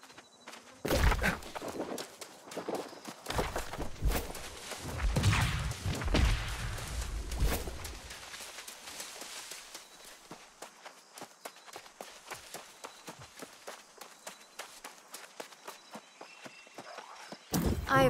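Footsteps crunch through grass and brush.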